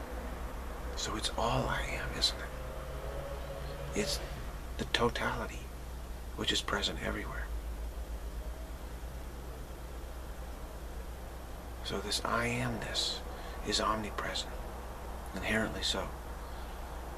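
A middle-aged man speaks calmly and close to the microphone, with pauses.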